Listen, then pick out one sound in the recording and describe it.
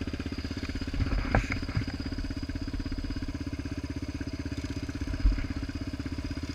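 A single-cylinder four-stroke sport quad engine thumps as the quad is ridden.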